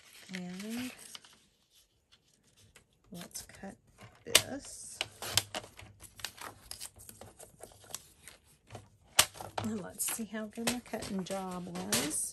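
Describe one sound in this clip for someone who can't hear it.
Paper rustles and taps as it is handled.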